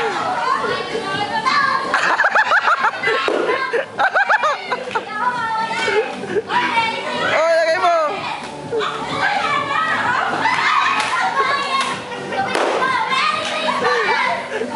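A group of adults and children laugh and shout nearby outdoors.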